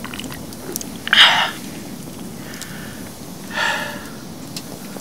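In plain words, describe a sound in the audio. A young man lets out a satisfied sigh and speaks briefly nearby.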